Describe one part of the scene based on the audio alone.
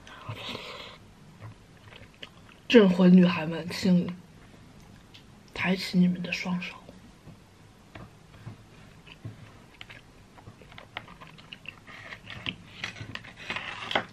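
A plastic spoon scrapes and taps in a plastic food box.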